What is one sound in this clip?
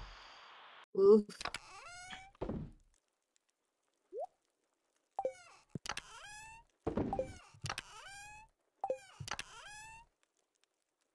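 Short electronic blips and chirps sound as items are moved in a game menu.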